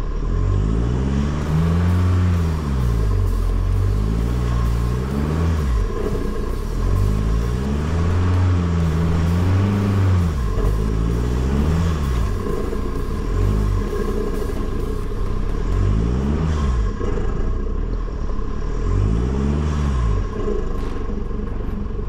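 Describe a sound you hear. A vehicle engine revs up and down repeatedly.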